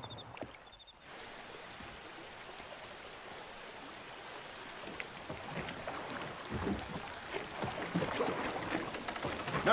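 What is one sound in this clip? Water laps and rushes steadily around a boat.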